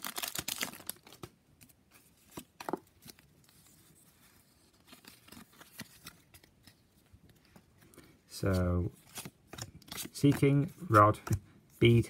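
Trading cards flick and rustle against each other.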